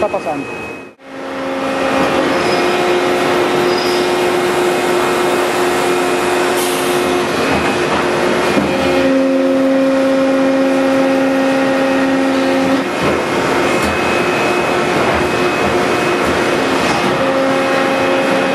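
Machinery hums steadily with a droning tone.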